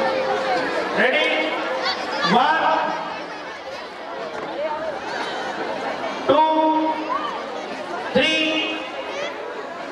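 A group of boys shout sharply together.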